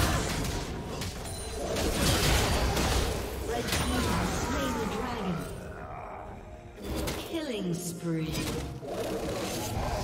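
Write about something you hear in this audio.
Fantasy battle sound effects clash, crackle and burst as spells are cast.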